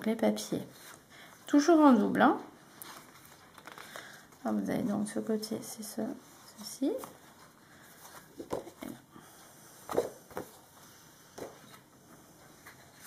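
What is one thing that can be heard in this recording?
Sheets of paper rustle and slide as they are handled.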